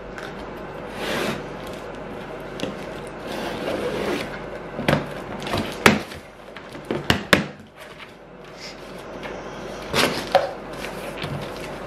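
Cardboard rustles and thumps as a box is handled.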